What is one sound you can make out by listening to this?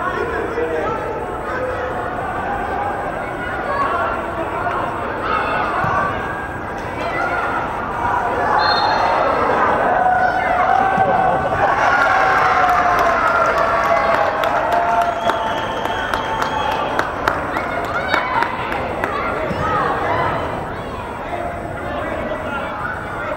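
A crowd of spectators talks and cheers, echoing in a large indoor hall.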